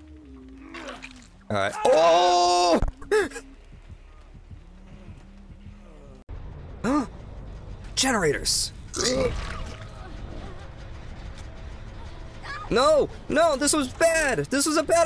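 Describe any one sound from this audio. A young man shouts and talks excitedly into a close microphone.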